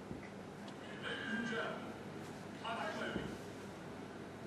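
A man announces through a loudspeaker in a large echoing hall.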